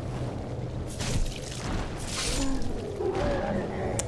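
Sword blows clang and slash.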